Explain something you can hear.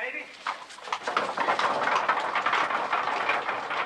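A horse-drawn carriage rattles over cobblestones.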